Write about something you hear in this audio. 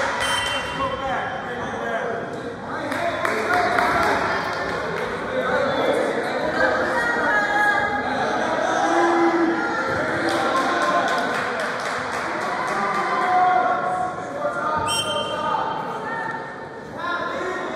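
A crowd shouts and cheers in a large echoing gym.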